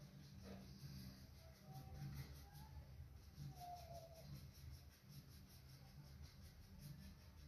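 A paintbrush dabs and brushes softly on canvas.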